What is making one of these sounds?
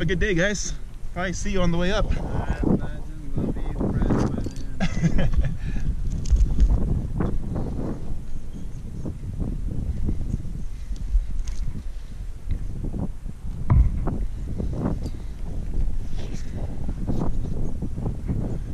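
Hands scrape and pat against rough rock.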